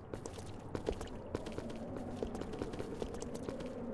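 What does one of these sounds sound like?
Footsteps crunch on a rough stone path.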